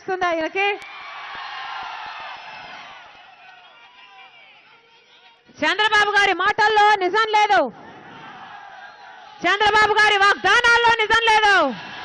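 A young woman speaks forcefully into a microphone over loudspeakers, in short, drawn-out calls.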